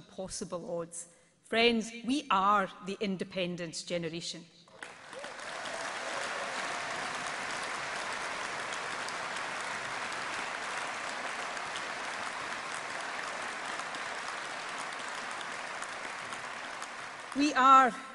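A woman speaks firmly into a microphone over loudspeakers in a large echoing hall.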